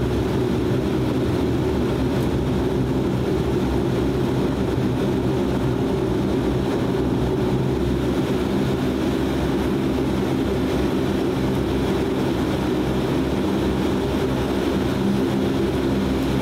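A propeller engine drones loudly and steadily close by.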